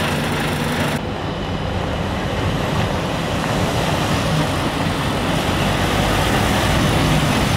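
A truck drives closer with its engine rumbling.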